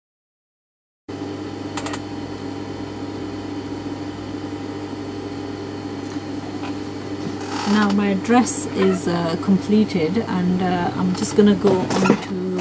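Fabric rustles softly as hands smooth it flat.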